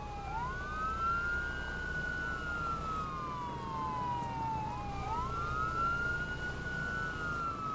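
A siren wails, rising and falling.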